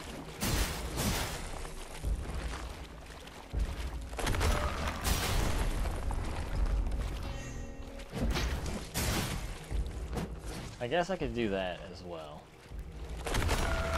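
Heavy weapon blows strike with sharp thuds.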